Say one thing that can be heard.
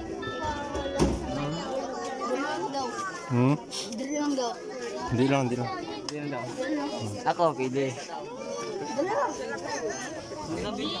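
A boy talks and laughs close by.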